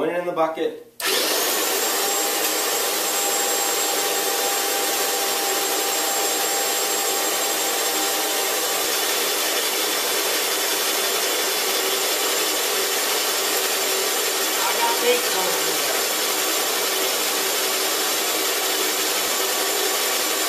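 A paint sprayer pump hisses and whirs steadily.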